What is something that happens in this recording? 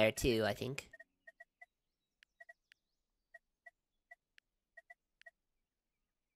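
Short electronic game beeps chime in a quick, uneven series.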